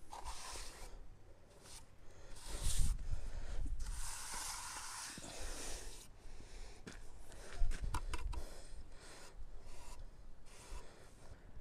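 A trowel scrapes and spreads mortar on concrete blocks.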